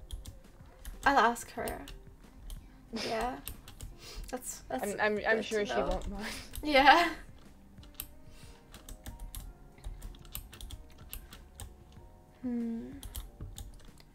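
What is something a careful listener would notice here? A young woman talks and laughs with animation into a close microphone.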